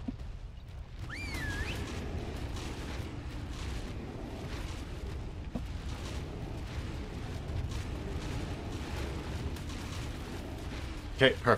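A large beast bites and tears with heavy, repeated thuds.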